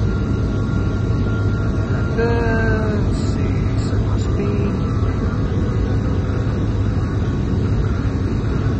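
Airliner jet engines rumble.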